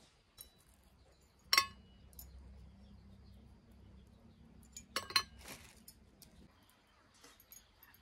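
Scraps drop onto a metal plate with light clinks.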